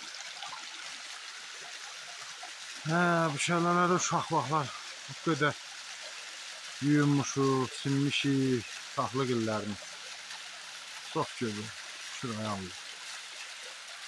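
A small waterfall splashes steadily onto rocks.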